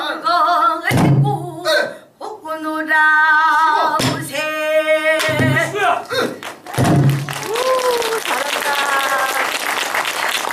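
A woman sings loudly in a strong, wavering voice.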